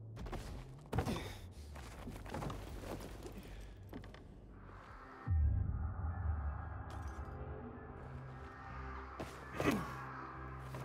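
Hands grab and scrape on a stone ledge.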